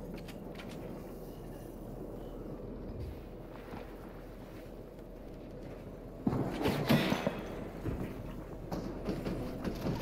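Game building pieces snap into place with quick clattering thuds.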